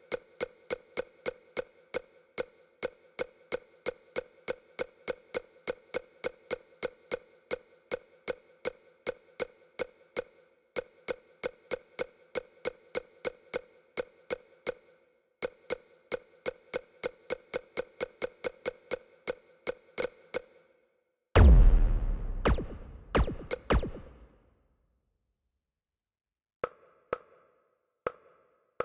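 Short electronic ticks repeat rapidly and evenly as a game menu scrolls.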